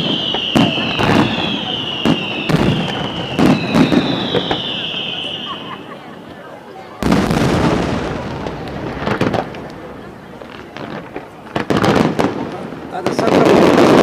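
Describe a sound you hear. Fireworks burst with loud, sharp bangs.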